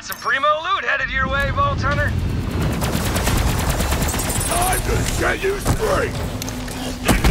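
A rapid-fire gun rattles loudly with crackling blasts.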